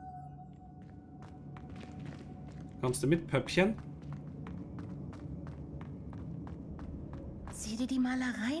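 Footsteps tap quickly on a stone floor.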